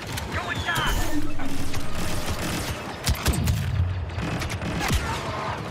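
Laser blasters fire in quick bursts.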